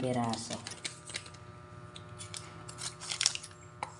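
A plastic sachet crinkles as a hand handles it.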